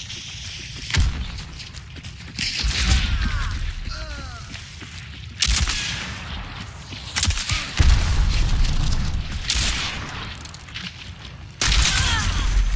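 Loud gunshots crack and echo outdoors.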